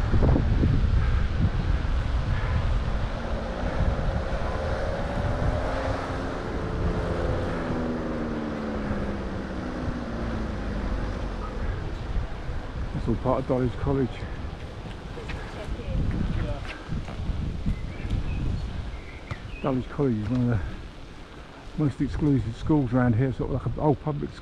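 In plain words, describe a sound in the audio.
A bicycle rolls along a road with tyres humming on the tarmac.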